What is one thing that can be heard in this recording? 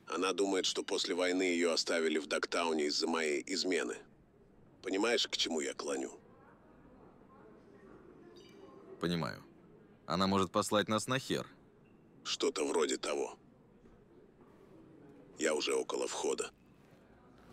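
A man talks calmly over a call.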